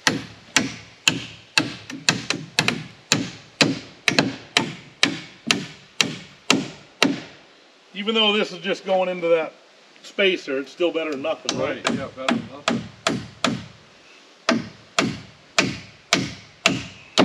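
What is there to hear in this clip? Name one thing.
A hammer strikes wood in quick, steady blows.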